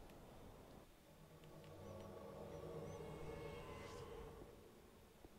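A magical summoning rings out with a shimmering chime.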